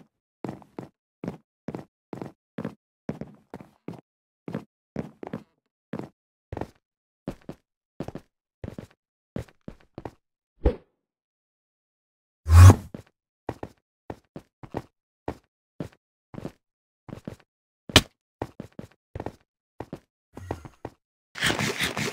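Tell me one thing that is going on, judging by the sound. Footsteps thud steadily on stone blocks.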